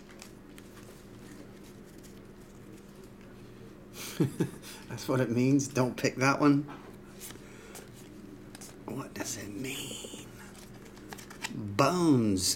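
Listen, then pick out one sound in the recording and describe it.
Glossy trading cards slide and rustle softly as they are flipped through.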